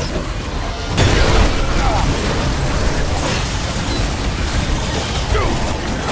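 An explosion bursts with a loud boom.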